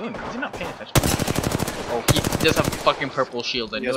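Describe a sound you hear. A rapid-fire gun shoots in quick bursts.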